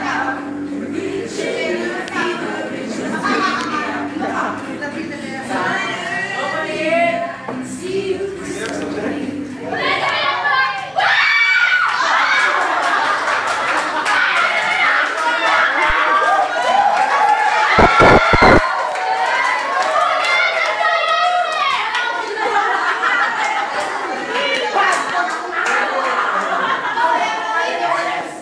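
Young men and women laugh and shout excitedly close by.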